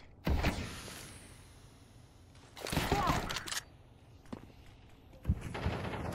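A young man talks into a close microphone with animation.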